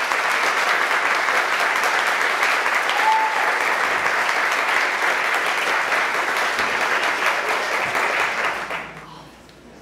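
An audience applauds loudly in a large hall, then the applause fades away.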